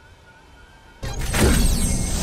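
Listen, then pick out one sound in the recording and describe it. A loud electric whoosh rushes in.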